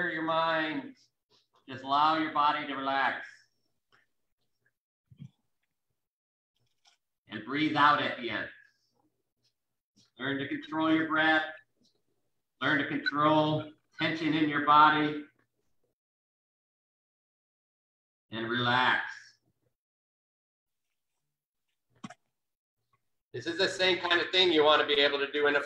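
An older man gives instructions in short bursts, heard through an online call.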